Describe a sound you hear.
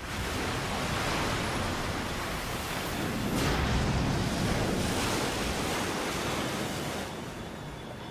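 A large vehicle crashes down into water with a loud rushing splash.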